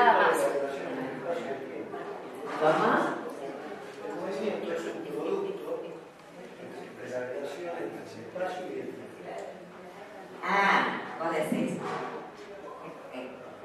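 A woman speaks calmly into a microphone in a room with a slight echo.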